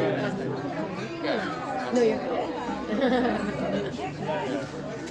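A woman speaks warmly and with emotion, heard through an online call.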